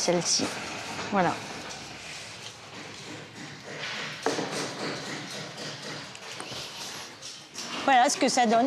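A brush strokes paint onto wood with a soft swishing.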